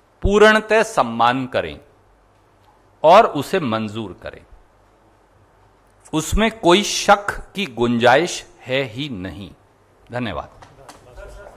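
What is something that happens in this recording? A man speaks loudly and with animation through a microphone.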